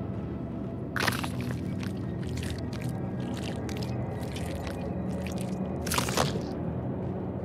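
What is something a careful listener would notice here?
Wet flesh squelches and tears.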